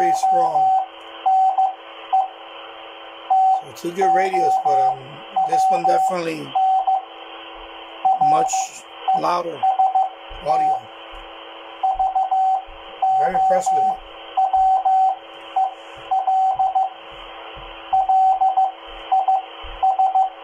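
Static hisses steadily from a radio speaker.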